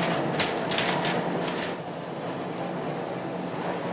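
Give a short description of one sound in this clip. Papers rustle and shuffle close by.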